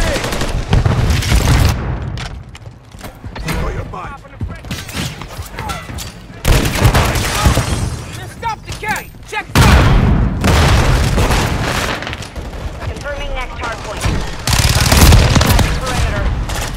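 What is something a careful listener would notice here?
Rapid gunfire bursts out in loud, repeated volleys.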